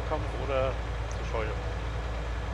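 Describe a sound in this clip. A man speaks briefly and casually through a microphone.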